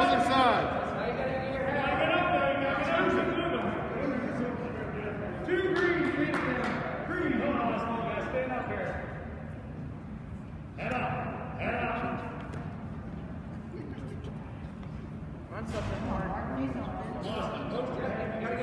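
Men shout encouragement loudly in an echoing gym.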